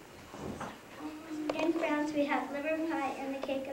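A second young girl speaks into a microphone, heard from across a hall.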